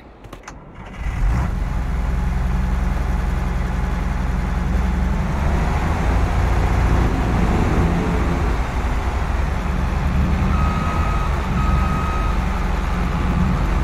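A combine harvester's engine starts up and rumbles steadily.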